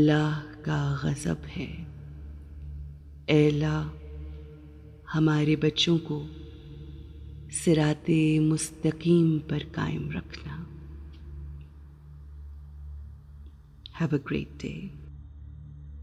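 A woman speaks calmly and slowly, close by, in short phrases.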